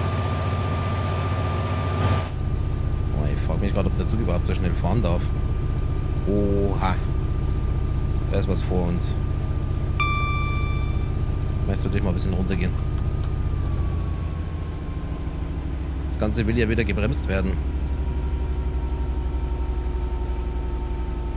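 Train wheels roll and clatter on the rails.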